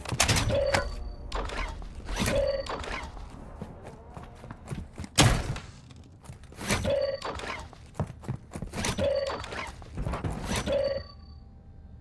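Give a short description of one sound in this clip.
Short chimes and rustles sound again and again as items are picked up in a game.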